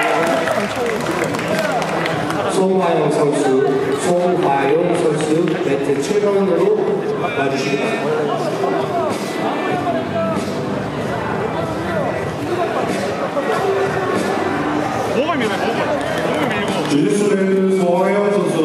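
A crowd of spectators shouts and calls out in a large echoing hall.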